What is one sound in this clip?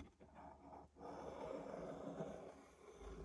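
Glue squirts from a squeezed bottle.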